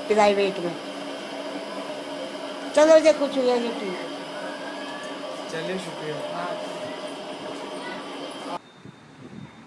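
An elderly woman speaks softly, close by.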